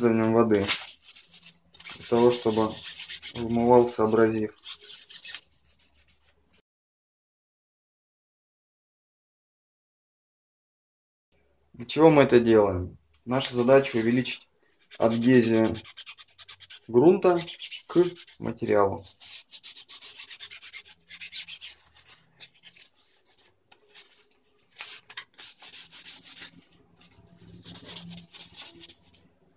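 A scraper rasps against a wall.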